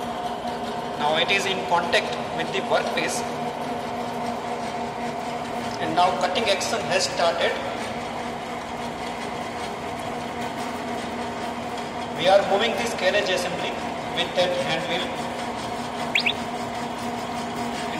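A cutting tool scrapes and screeches against a spinning metal rod.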